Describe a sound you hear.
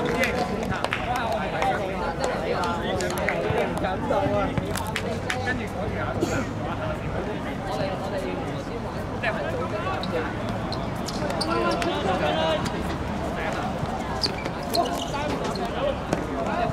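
Young men call out to each other across an outdoor court.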